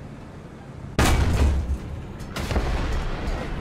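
A tank cannon fires with a loud boom that echoes away.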